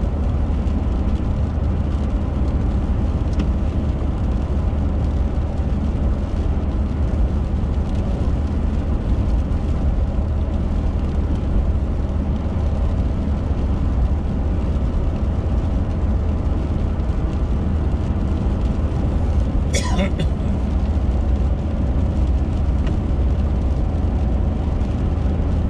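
Raindrops patter on a windshield.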